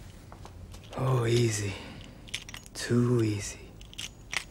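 A young man speaks quietly to himself, close by.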